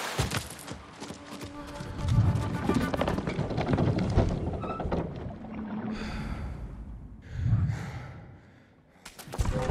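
Wooden rungs creak under climbing steps.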